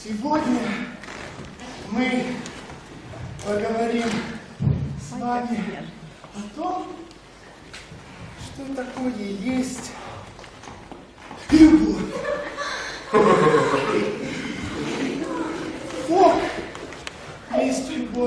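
A man speaks theatrically on a stage, heard from a distance in a hall.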